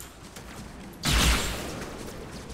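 A blast bursts loudly close by.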